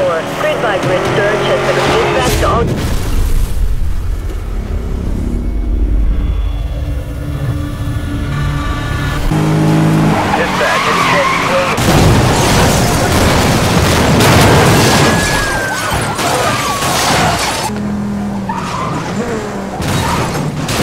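A car engine roars at high speed.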